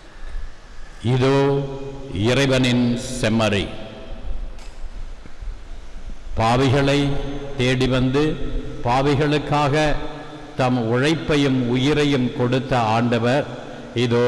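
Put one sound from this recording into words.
A man chants in a sung voice through a microphone, echoing in a large hall.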